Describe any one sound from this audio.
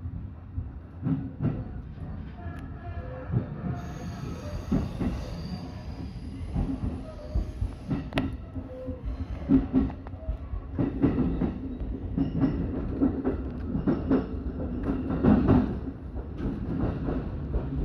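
Train wheels clack over rail joints and points.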